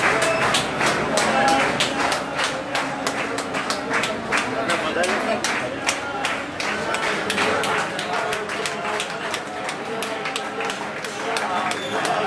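A large crowd of men chants loudly together in an echoing hall.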